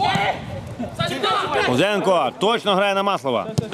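Men cheer loudly.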